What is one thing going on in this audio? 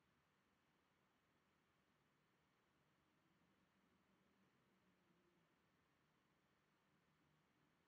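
A man hums softly and low, close by.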